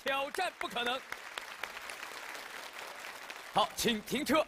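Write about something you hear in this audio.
An audience cheers and applauds.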